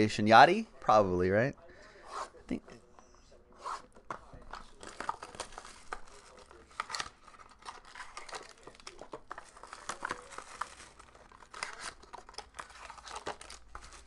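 Cardboard boxes scrape and tap as hands open them.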